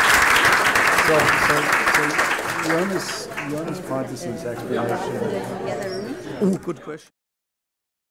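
A crowd of men and women chat as they get up and move about.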